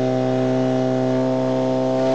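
Water sprays hard from a hose nozzle.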